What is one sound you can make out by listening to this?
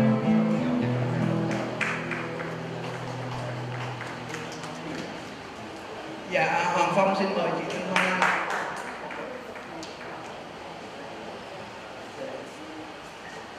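A man sings into a microphone through a loudspeaker.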